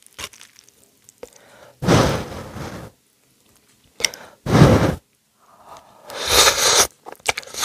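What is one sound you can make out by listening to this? A person chews soft noodles wetly close to a microphone.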